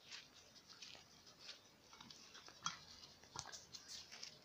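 Puppies rustle through dry leaves on the ground.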